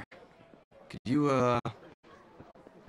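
A man speaks hesitantly.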